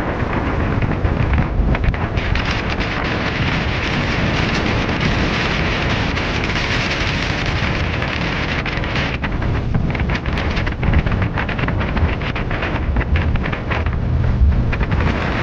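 A boat's engine drones steadily.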